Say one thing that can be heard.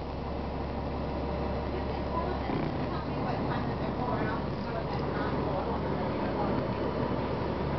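A bus rattles and creaks over the road.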